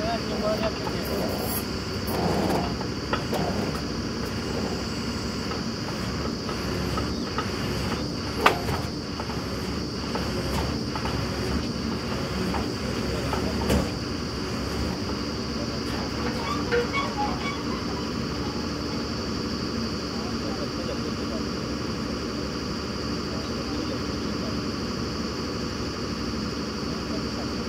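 A drilling rig's engine runs with a steady loud drone outdoors.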